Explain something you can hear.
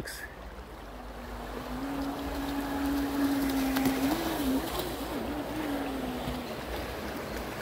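A small toy motor boat whines steadily across the water.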